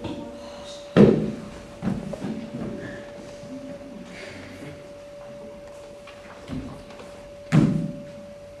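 Feet thump loudly on a floor.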